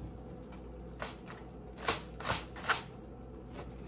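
Foil crinkles and rustles close by.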